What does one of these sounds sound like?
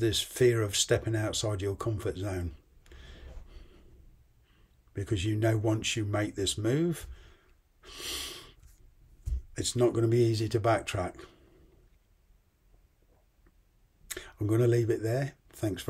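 An older man speaks calmly and close to the microphone, in short phrases with pauses.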